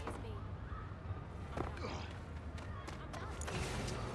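Footsteps run on hard ground.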